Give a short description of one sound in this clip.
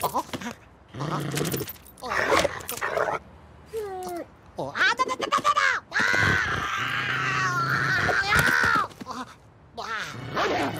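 A cartoon creature screams and yells shrilly.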